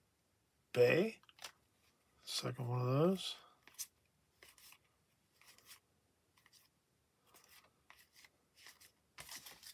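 Trading cards slide and flick against each other as they are shuffled by hand.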